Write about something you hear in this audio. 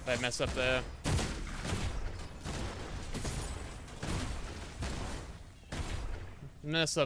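Magic spells blast and crackle in a fight.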